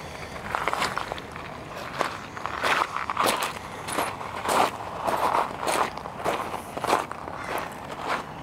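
Small waves lap gently against a pebbly shore.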